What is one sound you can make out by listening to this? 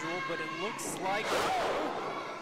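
A body slams onto a wrestling ring mat with a loud thud.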